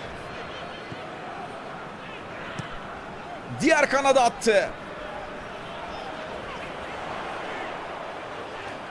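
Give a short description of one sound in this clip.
A large crowd murmurs and cheers steadily in a big stadium.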